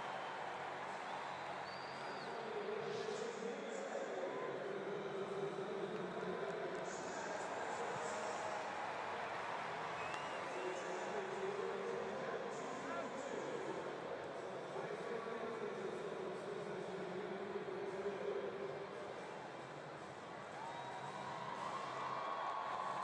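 A large stadium crowd murmurs and chatters steadily throughout.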